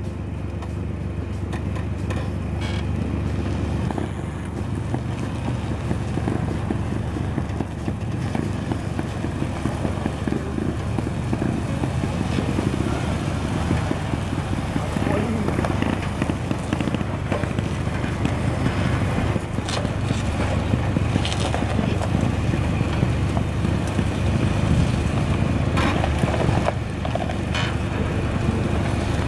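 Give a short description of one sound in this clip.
An off-road vehicle's engine idles and rumbles steadily.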